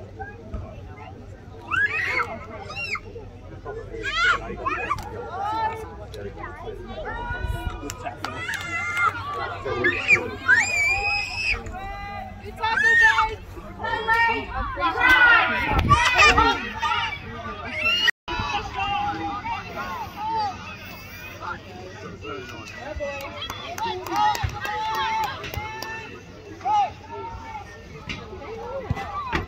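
A crowd of spectators shouts and cheers close by in the open air.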